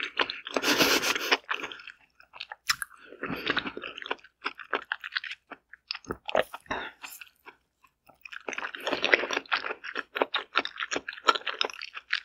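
Wet chewing and squelching sounds come up close.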